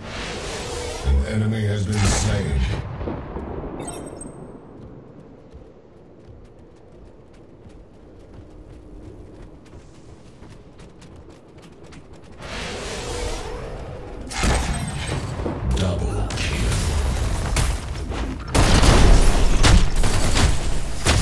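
Game blasts and magical bursts boom loudly.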